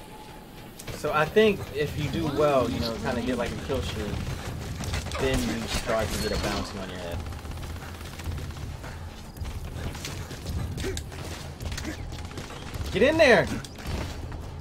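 A young man talks with animation into a headset microphone, in bursts.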